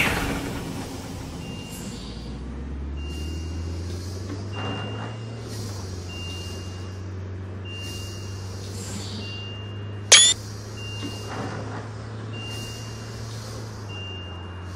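A bus engine idles quietly.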